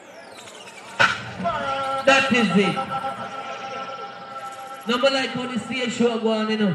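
Music plays loudly through large loudspeakers outdoors.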